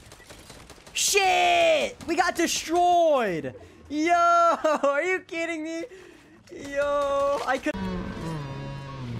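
A young man shouts excitedly into a headset microphone.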